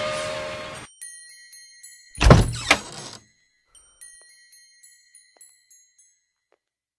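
Small bells on a wind chime jingle and ring.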